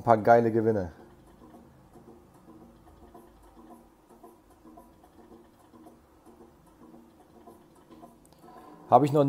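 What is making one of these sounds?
A slot machine plays a quiet repeating electronic tune.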